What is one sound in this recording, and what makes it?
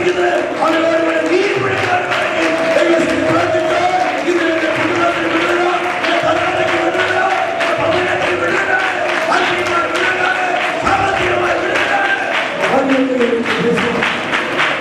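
A middle-aged man sings through a loudspeaker microphone with feeling.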